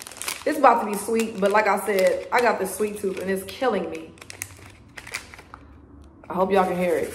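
A plastic candy wrapper crinkles and tears.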